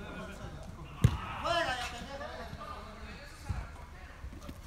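A ball is kicked with a dull thud.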